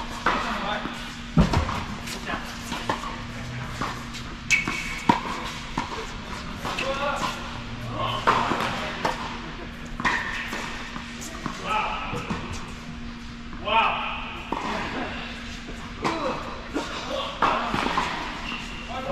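Tennis balls are struck with rackets and bounce on a hard court in a large echoing hall.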